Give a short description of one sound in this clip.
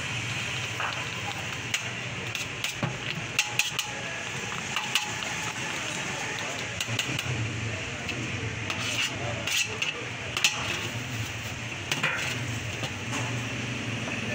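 A metal spoon scrapes and clinks against a metal tray.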